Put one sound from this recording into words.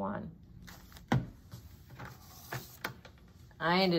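A sheet of card is set down on a wooden table with a soft tap.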